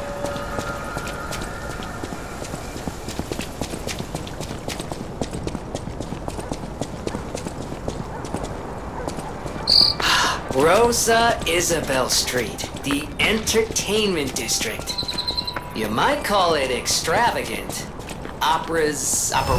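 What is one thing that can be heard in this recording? Footsteps run across wet cobblestones.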